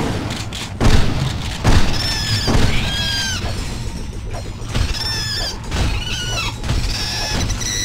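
Explosions boom in short, loud bursts.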